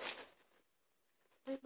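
Paper rustles.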